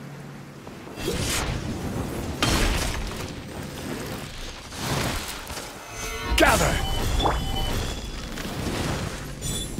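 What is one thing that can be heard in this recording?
Heavy blows and crashes boom during a video game fight.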